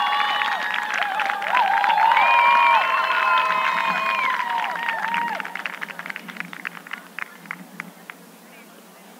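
Spectators clap their hands outdoors.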